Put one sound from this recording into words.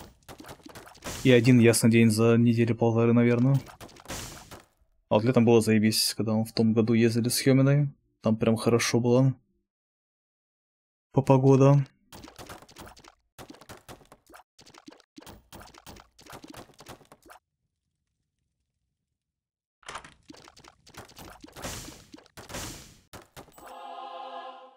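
Soft popping shots of a video game fire in quick bursts.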